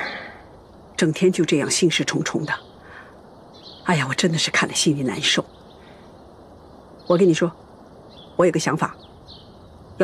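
A middle-aged woman speaks softly nearby.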